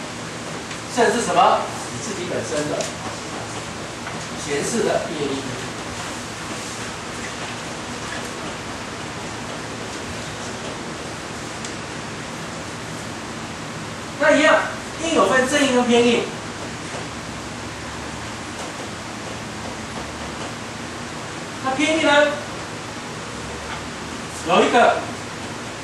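A man speaks in short bursts with long pauses, close to a microphone.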